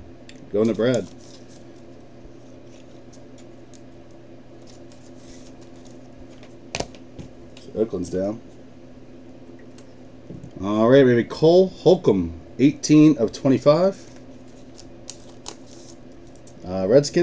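Plastic card sleeves rustle and click in hands.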